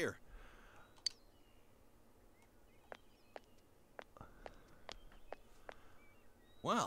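Footsteps tap lightly on hard ground.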